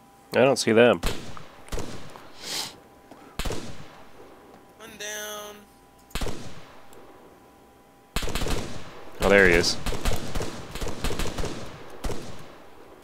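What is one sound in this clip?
Rifle shots crack in short bursts, echoing outdoors.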